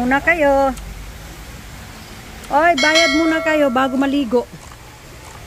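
A young woman speaks in a high, animated voice close by.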